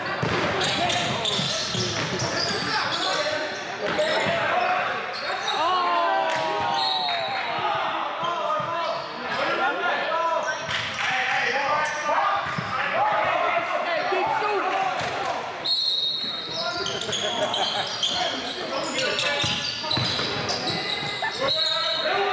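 Sneakers squeak on the hardwood floor.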